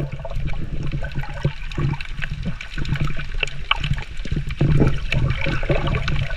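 Water swirls and rumbles underwater as a swimmer kicks with fins.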